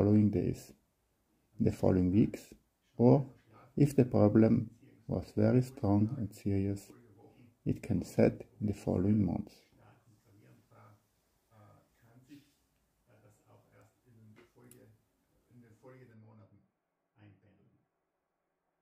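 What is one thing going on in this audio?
A middle-aged man speaks calmly, as if presenting, close by.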